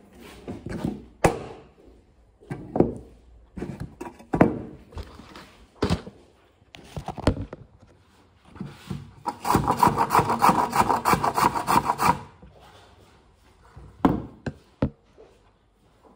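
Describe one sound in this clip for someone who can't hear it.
Knocks and taps sound on a wooden board.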